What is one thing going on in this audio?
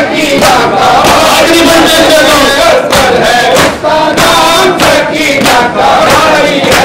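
A crowd of men chants loudly together outdoors.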